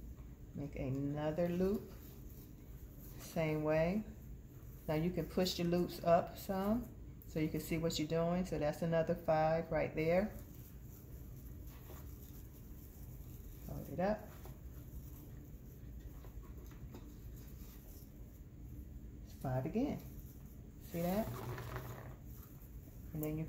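Satin ribbon rustles softly as hands fold and twist it.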